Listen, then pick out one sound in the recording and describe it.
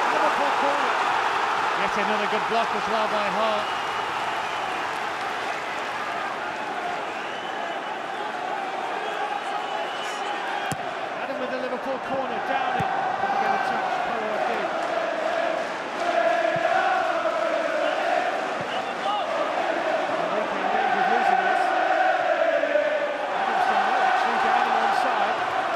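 A large stadium crowd chants and sings loudly throughout.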